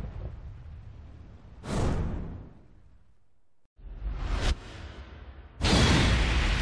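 Flames roar with a rushing whoosh.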